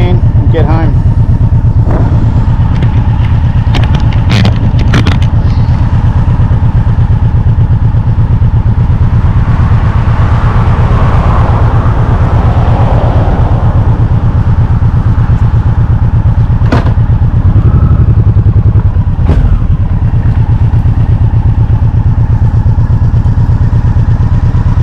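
A motorcycle engine idles with a steady, low chugging.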